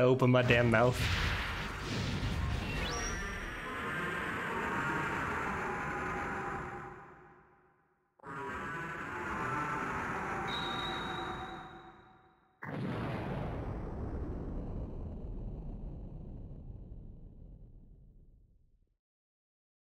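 Loud booming blasts from a video game rumble and slowly fade away.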